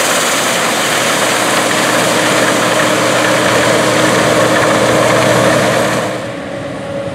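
A combine harvester engine roars steadily nearby.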